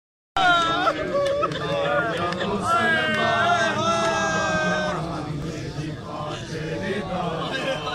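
A crowd of men beat their chests in rhythm.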